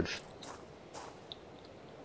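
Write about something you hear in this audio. A short click sounds.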